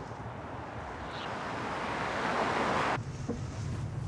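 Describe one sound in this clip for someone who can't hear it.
A car passes by on a road with a rising whoosh.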